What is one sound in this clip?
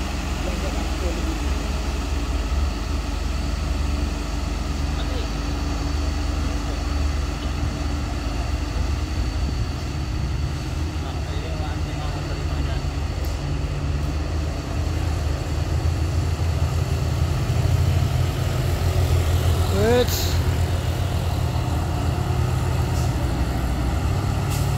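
A heavy truck engine rumbles low as it climbs slowly uphill.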